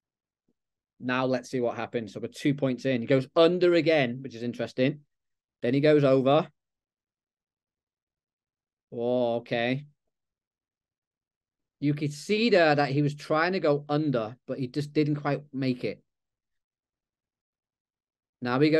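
A man talks calmly through an online call microphone, with pauses.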